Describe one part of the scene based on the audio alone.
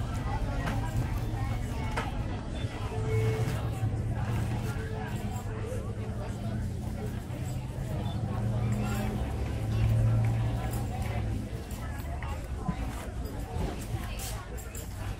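Plastic bags rustle and crinkle as a person handles them.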